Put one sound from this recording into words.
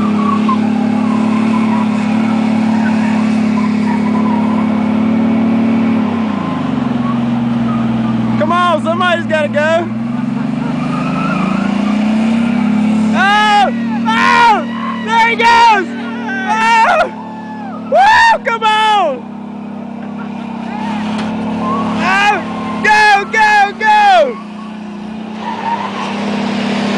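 A truck engine roars and revs.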